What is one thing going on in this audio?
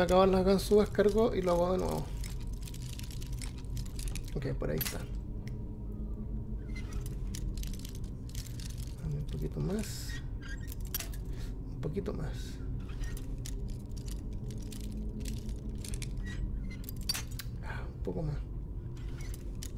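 A metal lock pick scrapes and clicks in a lock.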